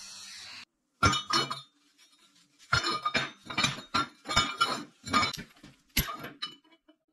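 Metal tubes knock against a steel table.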